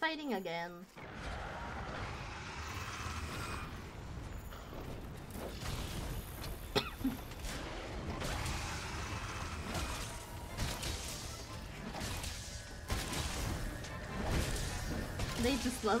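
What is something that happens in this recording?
Weapons clash and a creature roars in loud game combat.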